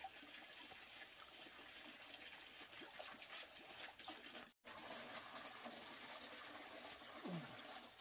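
A fishing net rustles softly.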